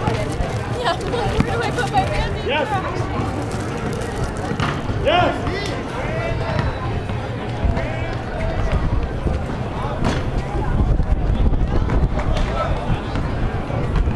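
A basketball bounces on pavement.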